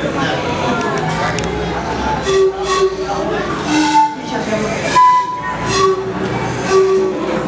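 Hand drums are tapped in a steady rhythm.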